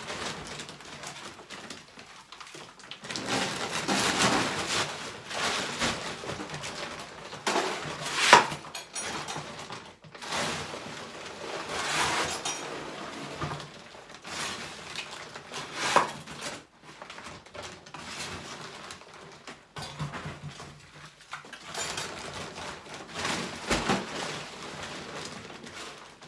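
A man scrapes and shovels rubble in repeated rough bursts.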